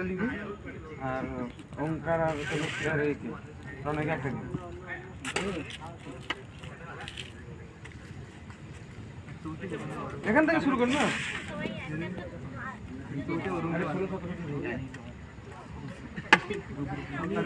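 Young men talk and chatter nearby.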